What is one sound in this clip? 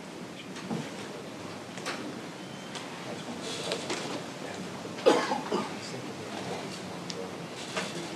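Footsteps and shuffling sound on a hard floor.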